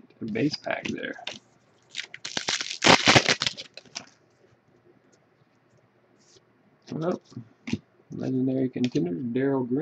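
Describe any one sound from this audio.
Hands shuffle and flick through a stack of trading cards.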